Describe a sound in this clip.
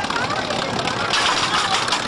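Children shout and cheer on a ride.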